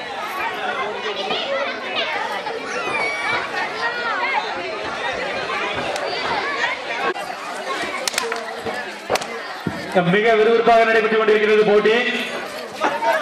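A crowd of children chatter and shout excitedly nearby.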